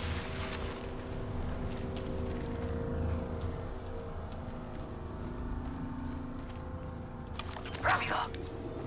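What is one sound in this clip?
Footsteps crunch over dirt and rocks at a steady running pace.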